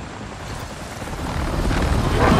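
Wind and rain rush loudly outdoors.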